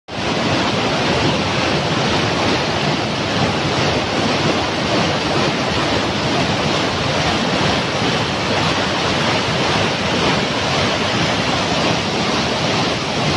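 Rushing water roars loudly and steadily.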